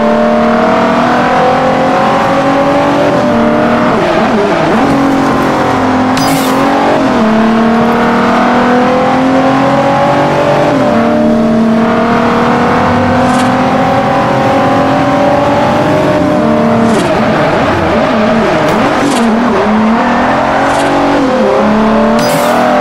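A sports car engine roars at high revs, rising in pitch and dropping sharply at each gear change.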